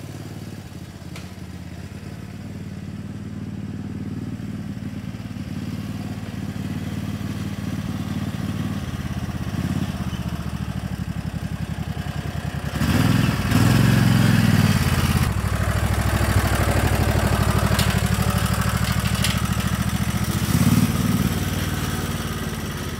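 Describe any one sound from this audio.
A utility vehicle's engine chugs steadily, growing louder as it drives closer.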